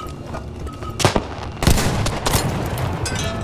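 A submachine gun fires.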